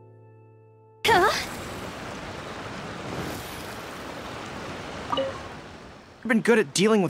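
A magical whoosh swells and hisses.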